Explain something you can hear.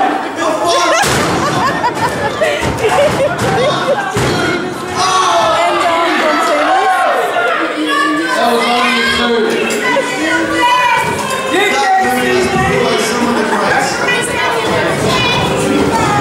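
Bodies slam down hard onto a wrestling ring mat.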